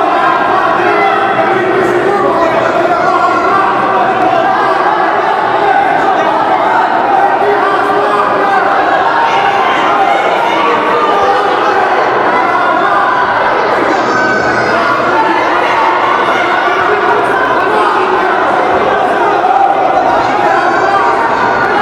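A crowd of spectators shouts and cheers nearby in an echoing hall.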